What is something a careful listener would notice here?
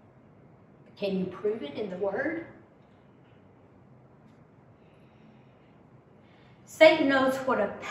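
A woman speaks calmly and clearly into a microphone, with pauses.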